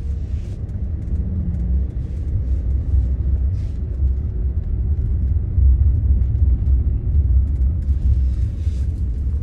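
A car engine hums low and steady from inside the cabin.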